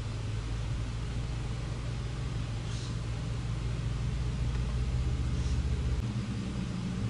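A van engine hums low as it rolls slowly past.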